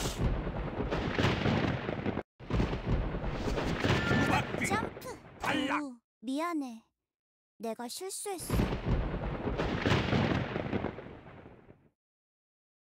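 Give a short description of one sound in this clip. Video game sound effects whoosh and jingle.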